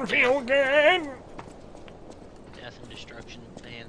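Footsteps patter quickly over stone.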